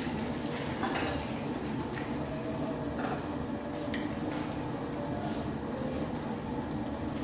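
A pot of water boils steadily.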